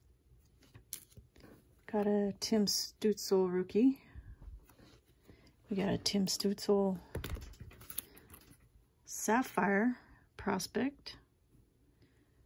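Trading cards slide against plastic sleeves with a soft rustle.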